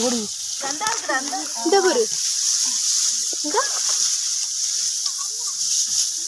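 Water trickles and flows steadily through the grass.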